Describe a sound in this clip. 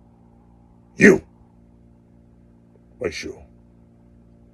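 A man speaks loudly close to the microphone.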